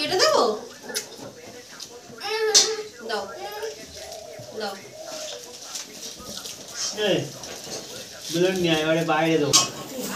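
Young children talk and shout with animation close by.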